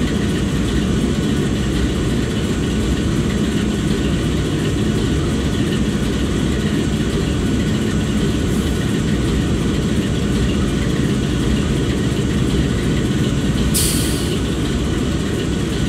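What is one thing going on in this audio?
A diesel locomotive engine idles with a deep, steady rumble.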